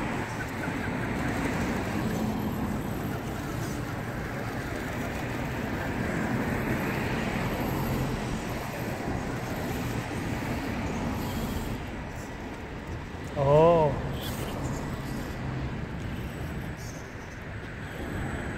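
Plastic tyres roll and scrape over pavement.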